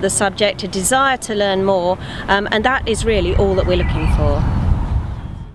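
A woman speaks calmly close to a microphone outdoors.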